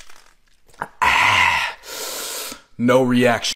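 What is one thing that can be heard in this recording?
A young man groans in pain.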